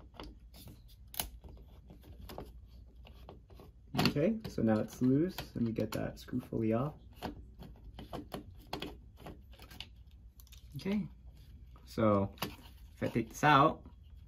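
A screwdriver clicks and scrapes against small metal parts.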